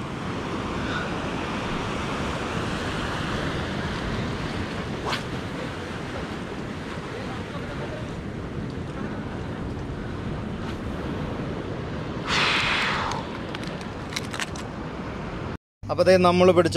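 Waves wash against rocks.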